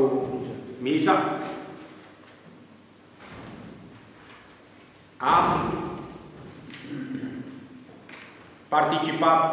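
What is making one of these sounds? A middle-aged man speaks with animation into a microphone in an echoing room.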